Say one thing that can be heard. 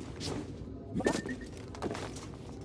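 A small robot chirps and beeps.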